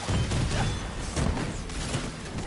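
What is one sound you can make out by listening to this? Explosions boom and crackle.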